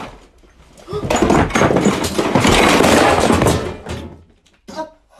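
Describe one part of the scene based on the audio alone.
A shelf crashes to the floor with a loud clatter.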